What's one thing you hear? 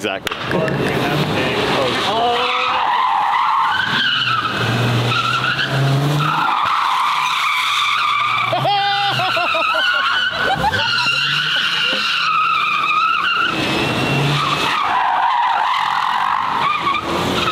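Car tyres screech as a car drifts on pavement.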